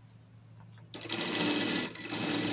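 A sewing machine stitches rapidly.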